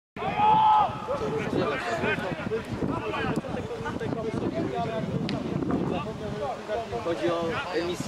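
A crowd of young men and spectators shout and chatter outdoors.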